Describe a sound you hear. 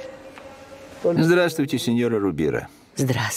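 An elderly man speaks up close.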